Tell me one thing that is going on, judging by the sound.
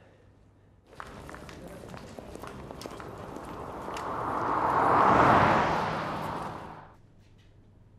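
An old car drives past outdoors, growing louder then fading.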